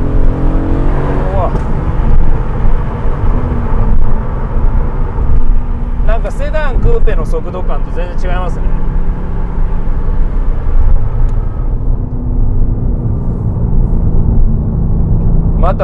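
A car engine roars loudly from inside the cabin, rising in pitch as it accelerates.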